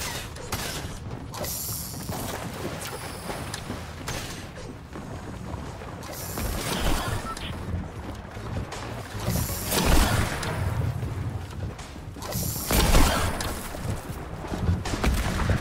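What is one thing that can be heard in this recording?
A fishing line whirs as it is cast and reeled in.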